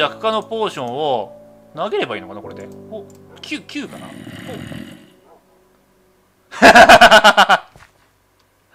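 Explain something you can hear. A zombie groans and grunts in low, rasping bursts.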